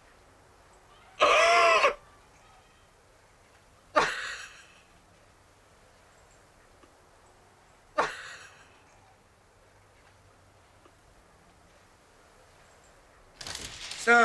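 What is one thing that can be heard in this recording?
A man sobs and wails loudly.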